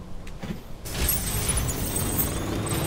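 A truck engine rumbles as the truck drives off over rough ground.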